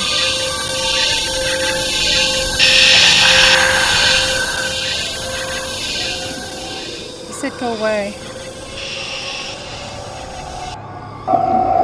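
An electronic device hisses with static.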